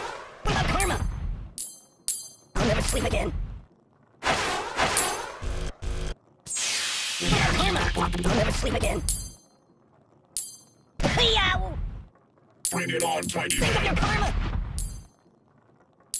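Cartoon explosions boom in short bursts.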